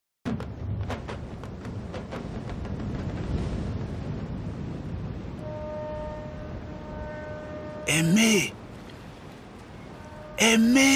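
Waves wash against rocks nearby.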